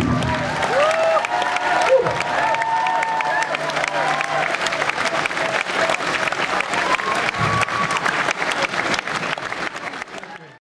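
An audience claps steadily.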